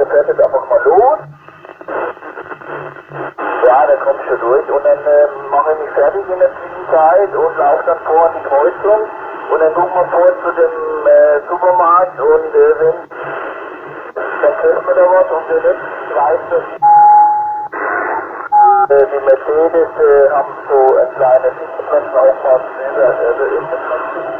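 Voices talk over a crackly two-way radio loudspeaker.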